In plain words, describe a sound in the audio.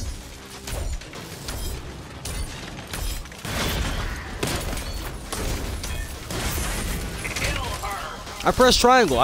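Gunfire and impacts clatter in a video game.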